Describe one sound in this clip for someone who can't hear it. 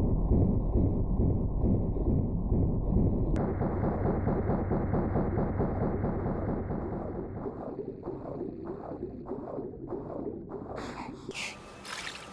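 A muffled underwater rumble churns steadily, then fades.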